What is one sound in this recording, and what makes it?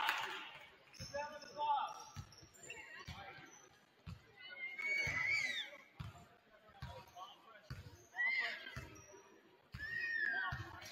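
A basketball bounces in steady dribbles on a hardwood floor in a large echoing gym.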